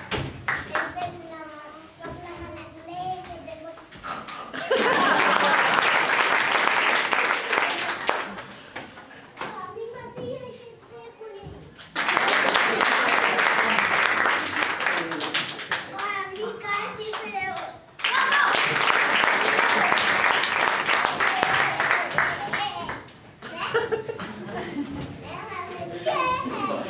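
A group of young children sings together in an echoing hall.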